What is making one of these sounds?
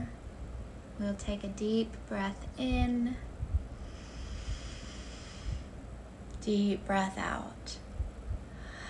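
A woman speaks calmly and softly, close to a microphone.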